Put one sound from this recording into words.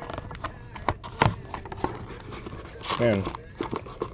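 A cardboard box lid is pried open.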